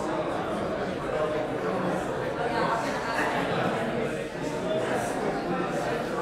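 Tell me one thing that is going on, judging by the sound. An audience murmurs and chatters in a large, echoing hall.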